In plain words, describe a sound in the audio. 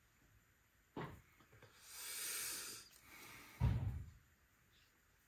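A clay pot is tapped and knocked on a wooden surface.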